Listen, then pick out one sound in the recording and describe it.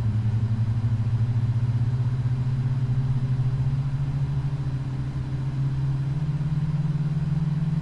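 Jet engines drone steadily with a low throbbing hum that rises slightly in pitch.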